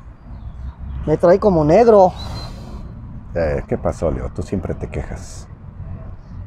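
A middle-aged man talks calmly up close.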